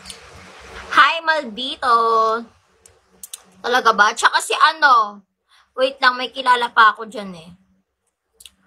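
A young woman speaks playfully and close up, heard through a phone microphone.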